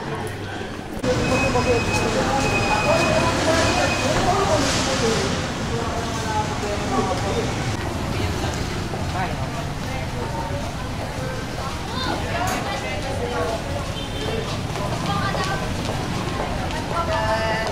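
Traffic hums on a busy street outdoors.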